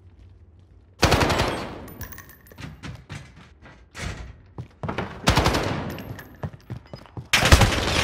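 Rapid gunfire rings out in loud bursts.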